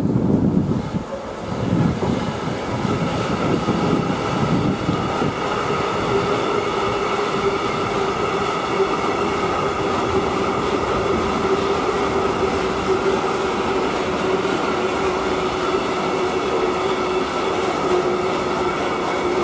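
A long freight train rolls by steadily, its wheels clattering and squealing on the rails.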